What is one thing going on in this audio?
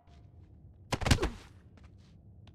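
A body falls heavily onto a stone floor.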